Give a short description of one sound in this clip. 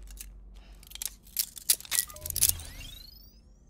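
A metal cuff clicks and clatters around a man's wrist.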